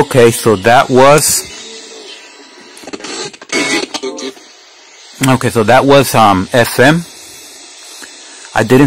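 A man speaks through a small radio loudspeaker.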